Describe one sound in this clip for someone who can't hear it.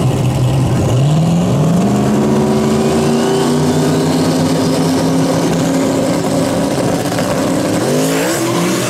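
A turbocharged V8 drag car revs at the start line.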